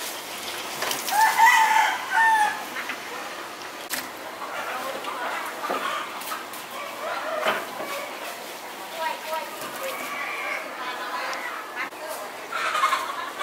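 A poultry plucking machine whirs as it spins.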